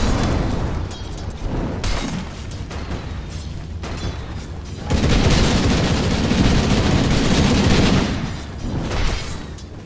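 Spells and weapons clash and crackle in a busy game battle.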